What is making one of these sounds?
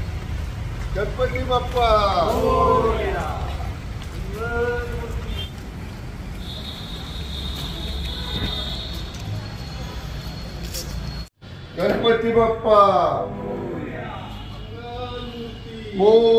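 A group of men chant loudly in unison nearby.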